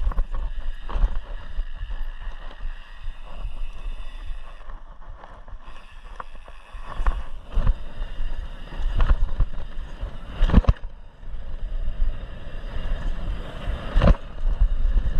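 A bicycle frame and chain rattle and clunk over bumps.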